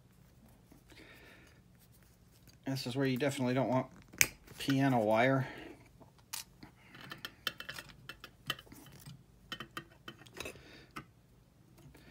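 Small metal parts click and tap softly against each other.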